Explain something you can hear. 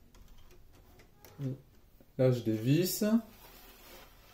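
Small plastic parts click and rattle.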